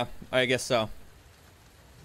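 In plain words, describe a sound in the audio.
A man speaks briefly and loudly into a close microphone.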